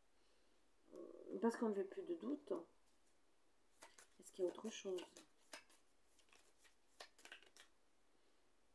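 Playing cards riffle and tap as they are shuffled.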